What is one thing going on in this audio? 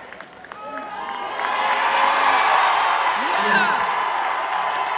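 A crowd claps and cheers loudly in a large echoing hall.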